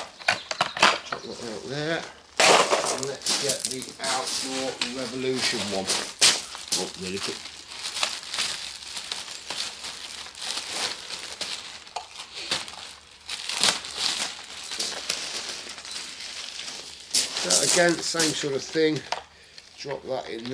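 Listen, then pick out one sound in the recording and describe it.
A middle-aged man talks calmly into a clip-on microphone, close by.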